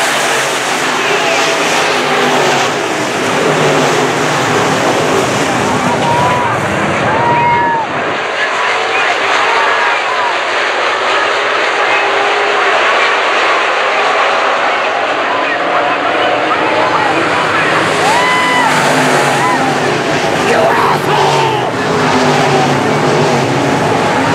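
Race car engines roar loudly as cars speed around a dirt track outdoors.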